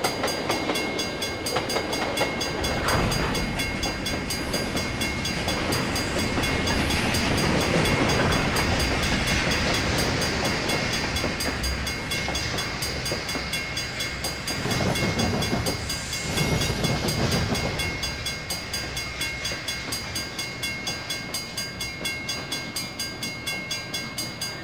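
Train wheels clack rhythmically over the rail joints.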